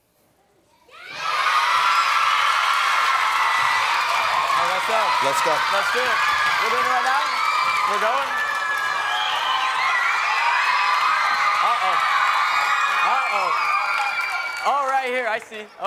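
A crowd of young girls screams and cheers loudly.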